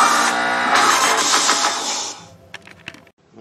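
Racing game music and engine sounds play loudly from laptop speakers.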